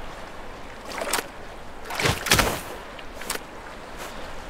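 A cartoon seal squeaks.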